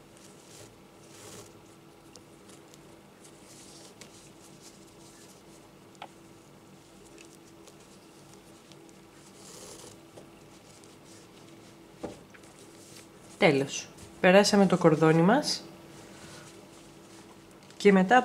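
Crocheted fabric rustles softly as hands handle it.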